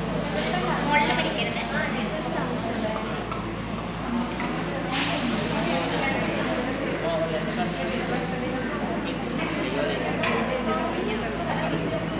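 An older man speaks to a group.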